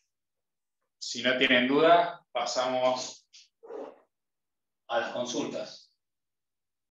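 A man speaks calmly close by, in short phrases.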